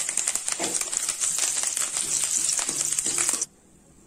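A metal strainer scrapes against a pan.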